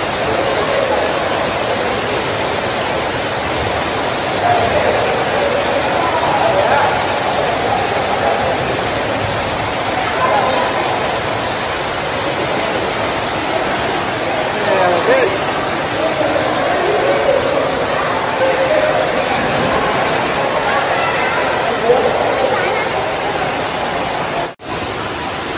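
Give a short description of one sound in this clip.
Water splashes steadily from a waterfall into a pool in a large echoing hall.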